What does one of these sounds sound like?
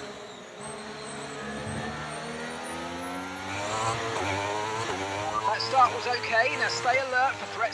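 A racing car engine revs higher and higher, dropping briefly at each gear change.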